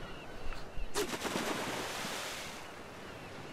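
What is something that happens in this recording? A fishing line splashes into water.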